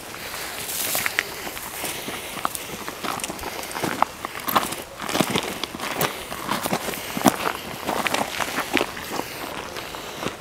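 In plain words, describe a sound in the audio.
Dry grass rustles as it brushes past.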